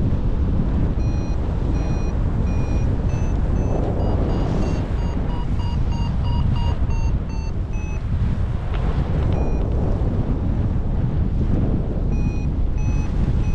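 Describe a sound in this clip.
Strong wind rushes and buffets loudly past the microphone.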